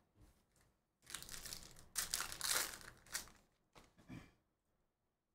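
Foil card packs crinkle and tear open.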